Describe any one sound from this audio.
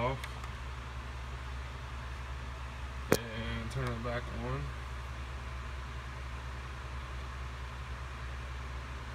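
A game console's fan hums steadily.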